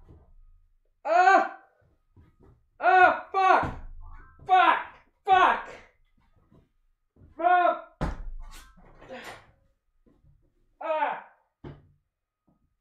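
A young man shouts and screams in excitement.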